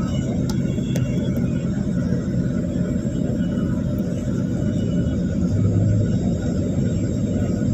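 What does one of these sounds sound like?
A bus engine idles nearby with a low, steady rumble.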